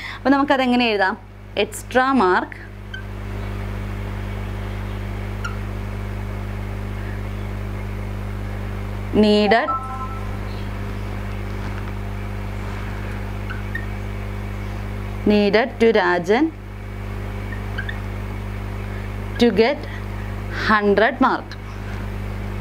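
A young woman speaks calmly and close by, in short phrases with pauses.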